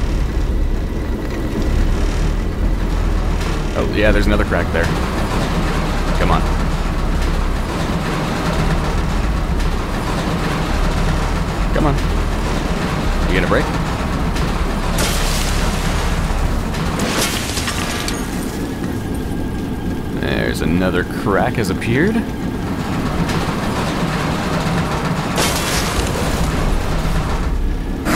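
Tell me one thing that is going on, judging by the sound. Machinery hums low and steady.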